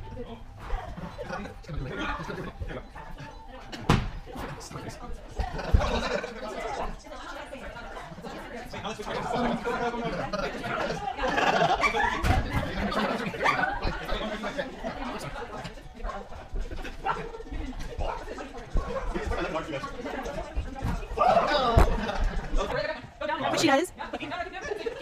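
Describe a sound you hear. Several adults talk and laugh nearby.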